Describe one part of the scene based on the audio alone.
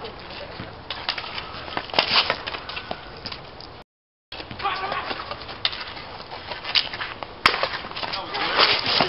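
Hockey sticks clack against a ball on pavement outdoors.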